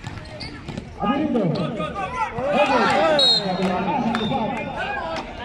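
A crowd of young men and women shouts and cheers close by, outdoors.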